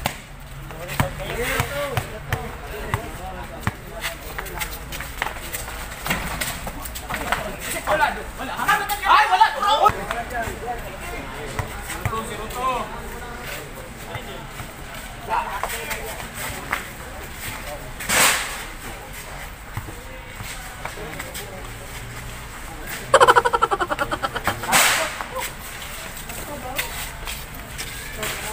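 A ball thuds as bare feet kick it.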